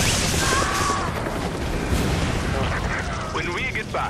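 An explosion booms and roars with crackling fire.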